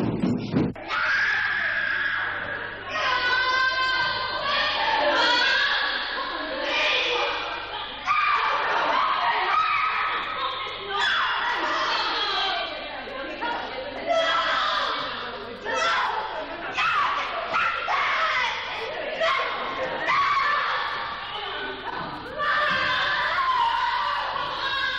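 Several women shout over one another during a scuffle.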